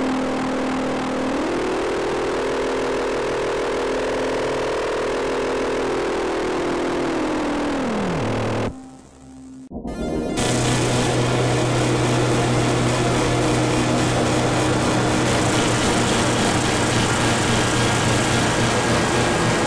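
A lap steel guitar plays long, sliding notes.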